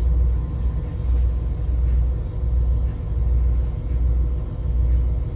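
A train engine hums low and steady from inside the cab.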